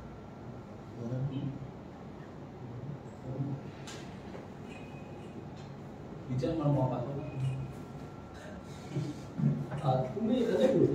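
A man speaks calmly into microphones close by, with pauses.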